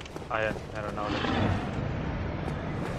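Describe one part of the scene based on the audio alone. A magical shimmering whoosh rises.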